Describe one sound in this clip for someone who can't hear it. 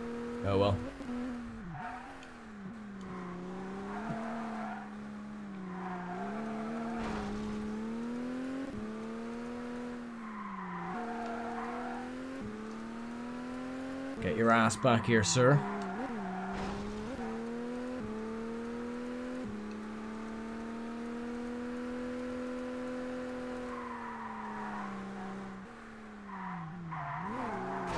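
A car engine hums steadily and rises and falls in pitch as the car shifts gears.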